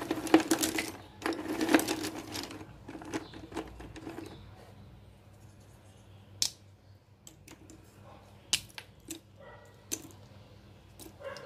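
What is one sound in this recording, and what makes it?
Wooden sticks clatter and rattle as a hand stirs through them.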